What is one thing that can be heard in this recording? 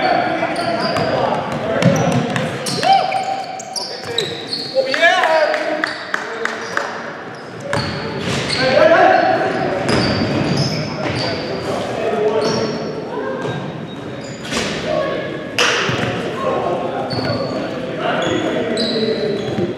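Young men shout and call out across a large echoing hall.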